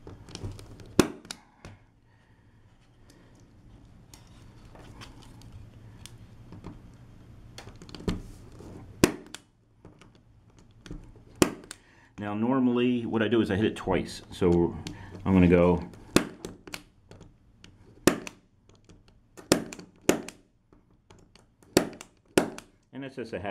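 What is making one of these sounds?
A punch-down tool snaps with sharp clicks.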